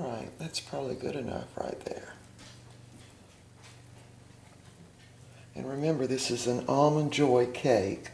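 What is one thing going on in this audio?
A spatula scrapes softly against a metal pan.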